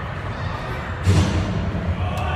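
Feet thud on a hard floor as a girl lands a handstand.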